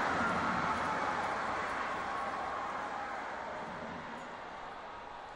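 A large stadium crowd roars and slowly fades.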